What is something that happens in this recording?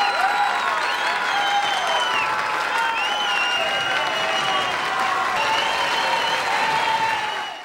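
A man speaks to an audience.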